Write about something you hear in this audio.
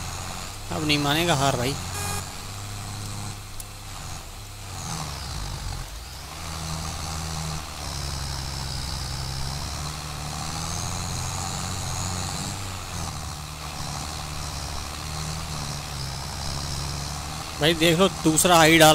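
A tractor engine chugs steadily.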